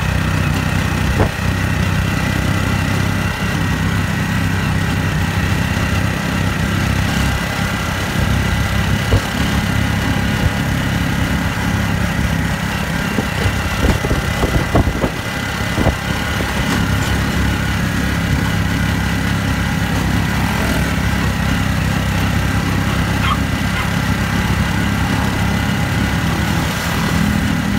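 Wind rushes past an open vehicle.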